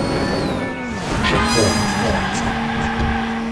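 Tyres skid and hiss as a race car drifts.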